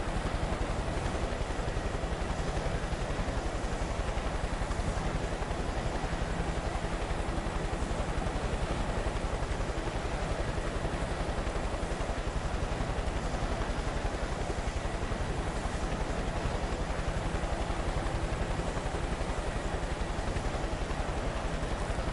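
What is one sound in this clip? A helicopter's rotor thumps fast and steadily nearby.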